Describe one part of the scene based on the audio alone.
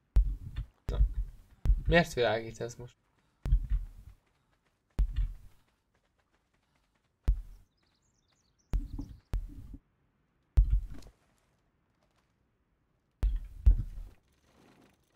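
A pickaxe strikes repeatedly with dull thuds.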